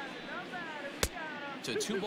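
A ball pops into a catcher's mitt.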